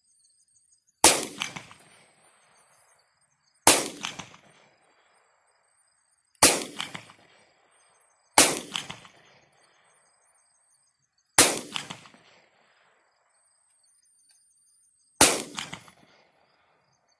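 Pistol shots ring out one at a time outdoors, each followed by a rolling echo.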